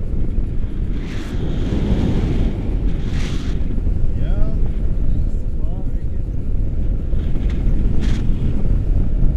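A man calls out excitedly over the wind.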